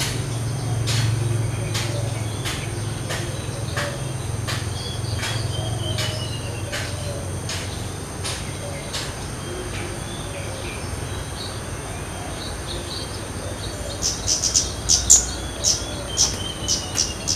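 A small bird calls with sharp, quick chirps, over and over.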